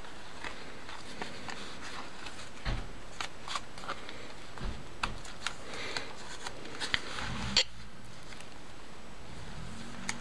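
Stiff paper pages rustle and flap softly as they are turned.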